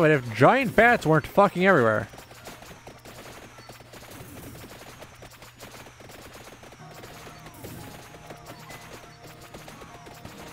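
Small electronic sound effects pop and chime rapidly from a video game.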